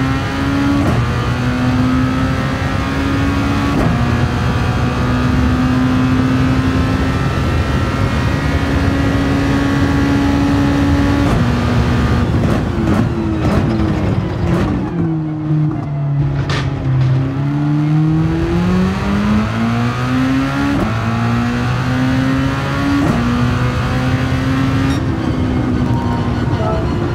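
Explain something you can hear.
A racing car engine roars at high revs, shifting up through the gears.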